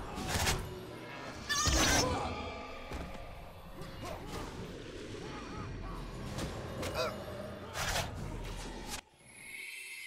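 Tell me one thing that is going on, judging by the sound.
Spells burst and crackle in quick bursts of fighting.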